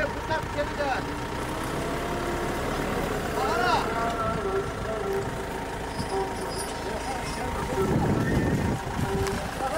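A combine harvester engine rumbles steadily close by.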